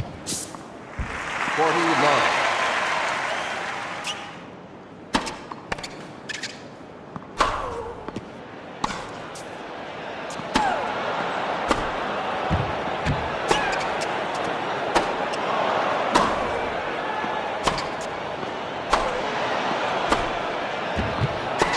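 A crowd cheers and applauds loudly.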